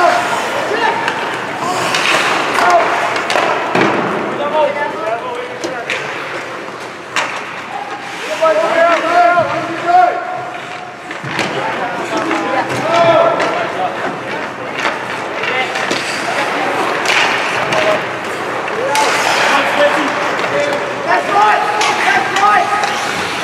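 Skates scrape and carve across the ice.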